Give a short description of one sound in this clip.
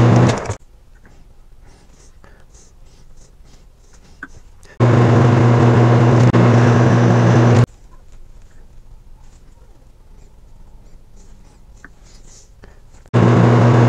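Metal tools click and clink softly against a lathe chuck.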